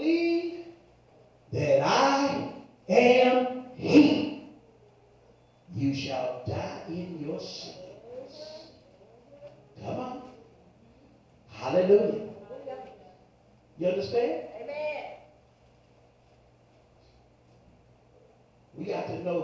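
A man preaches with fervour into a microphone over loudspeakers.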